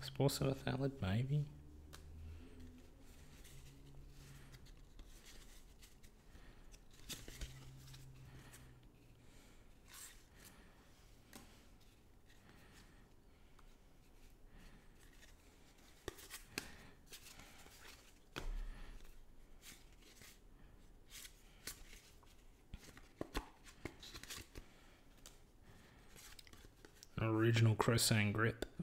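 Playing cards rustle and slide against each other as they are flicked through by hand.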